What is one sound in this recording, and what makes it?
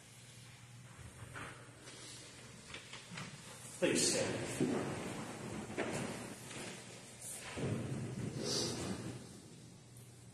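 Footsteps walk across a floor in an echoing room.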